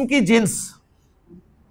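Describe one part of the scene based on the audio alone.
A man speaks briefly and with animation, close by.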